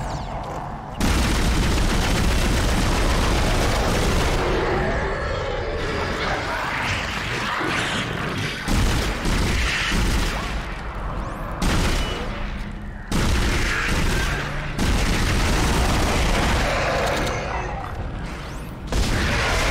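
Plasma guns fire in sharp bursts.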